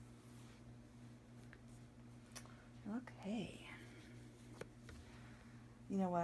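Hands handle a doll, with soft taps and rustles.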